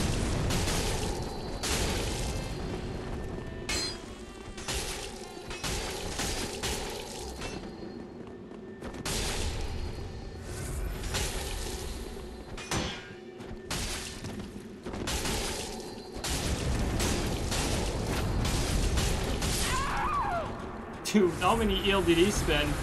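Metal blades clang and strike in a fight.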